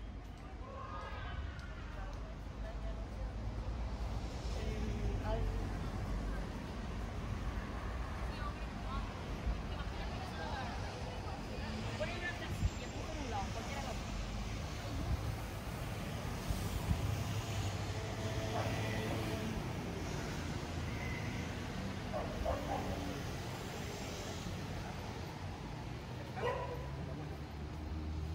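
Men and women chatter in passing, close and far.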